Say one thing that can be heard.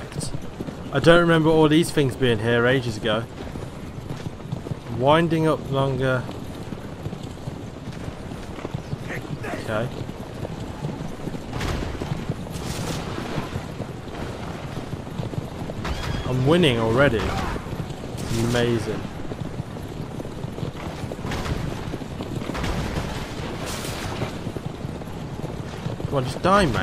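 Horses' hooves clop quickly.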